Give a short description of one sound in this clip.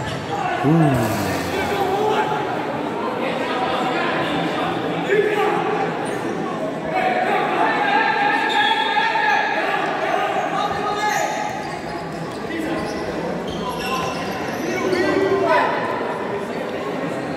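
A ball is kicked and bounces on a hard court.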